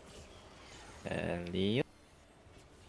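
A young man speaks briefly with animation close to a microphone.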